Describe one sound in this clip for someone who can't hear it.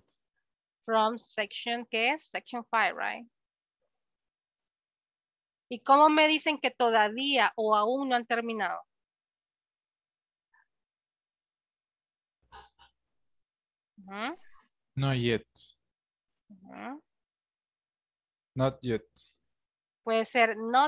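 A young woman speaks calmly over an online call, pausing between phrases.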